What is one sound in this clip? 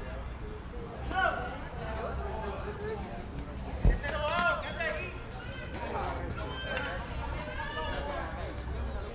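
Young men call out and chatter across an open field.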